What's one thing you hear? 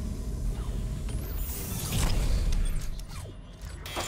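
A large metal hatch rumbles as it opens.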